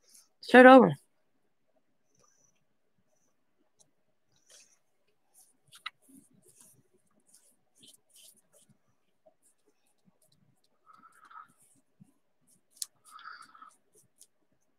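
A brush softly strokes and dabs across paper.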